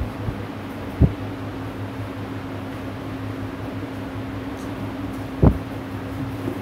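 A microphone is bumped with dull thumps.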